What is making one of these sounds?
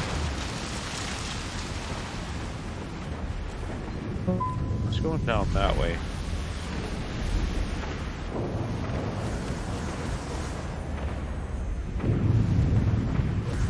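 A spaceship engine rumbles and roars steadily.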